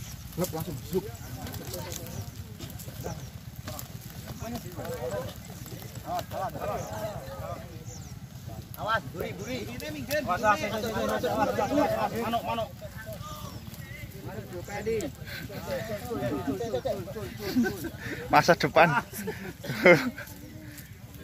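Young men and boys talk and call out to each other nearby, outdoors.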